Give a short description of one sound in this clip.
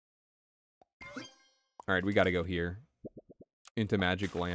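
Short cartoonish game sound effects pop and click.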